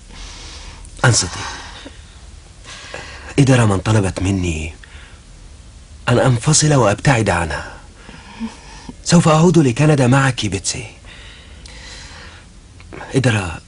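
A man speaks softly and earnestly up close.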